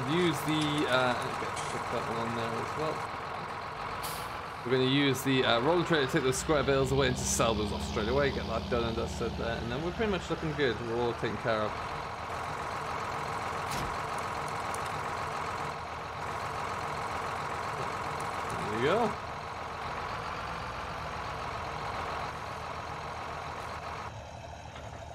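A tractor engine idles with a steady hum.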